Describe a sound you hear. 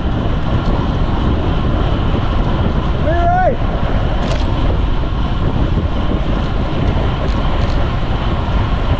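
Wind rushes loudly past a cyclist riding fast.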